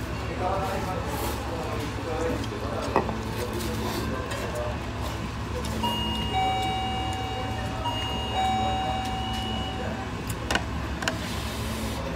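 A man slurps ramen noodles.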